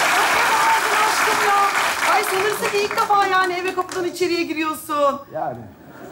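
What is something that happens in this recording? A woman speaks cheerfully into a microphone.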